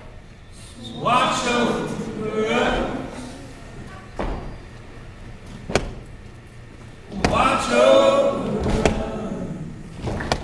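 A man speaks into a microphone, heard through loudspeakers.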